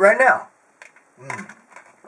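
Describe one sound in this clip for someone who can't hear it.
A man gulps a drink from a shaker bottle.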